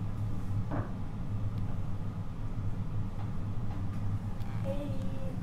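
Plastic dishes clatter softly on a table.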